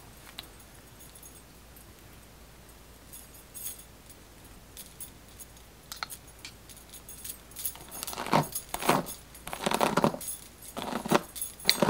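A plastic brush swishes through long doll hair.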